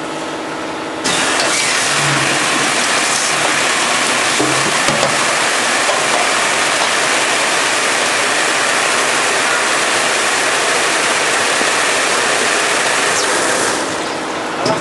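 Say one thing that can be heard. Water gushes into plastic jugs in a steady rush.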